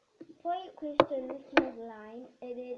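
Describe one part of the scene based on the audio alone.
A plastic lid clicks onto a tub.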